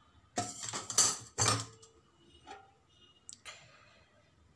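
Metal pots clank and scrape against each other.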